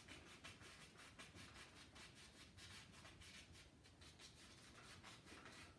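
A paintbrush brushes softly across a canvas in quick, repeated strokes.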